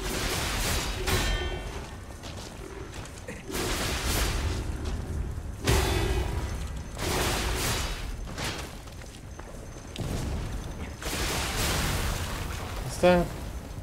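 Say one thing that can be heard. Swords clash in a fight.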